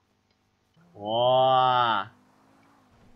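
A young man cries out loudly.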